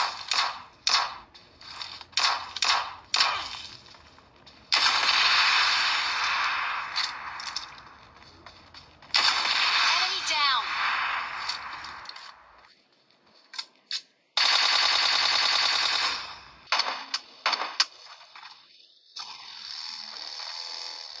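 Rapid gunfire rings out from a mobile game on a phone speaker.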